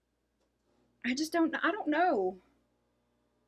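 A woman speaks briefly and expressively, close by.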